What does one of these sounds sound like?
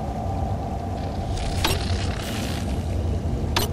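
Electricity crackles and buzzes.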